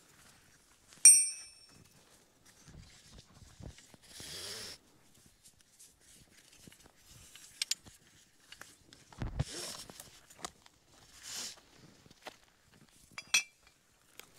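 A metal buckle clinks against a strap.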